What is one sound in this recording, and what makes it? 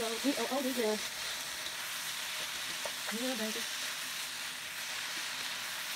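A spatula scrapes and stirs vegetables in a pan.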